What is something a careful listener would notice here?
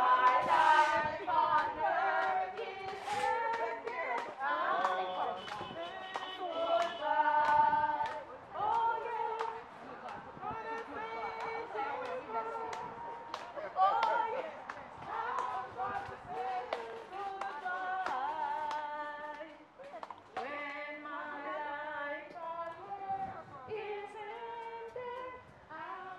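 A group of men sing slowly and solemnly outdoors.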